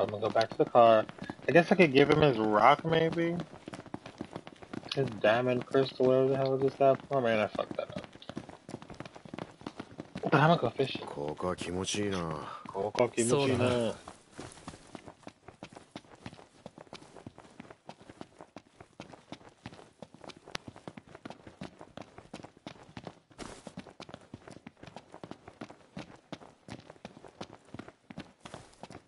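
Footsteps run quickly and steadily.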